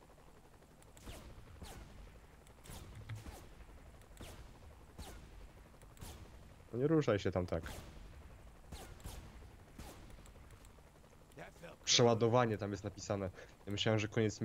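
A rifle fires repeated sharp shots.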